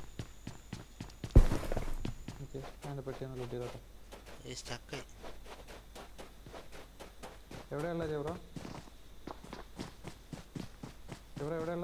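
Quick footsteps run over hard ground and dry grass.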